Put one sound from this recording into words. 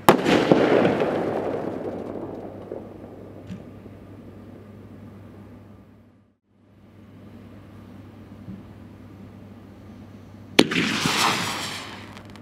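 Firework sparks crackle and fizzle as they fade.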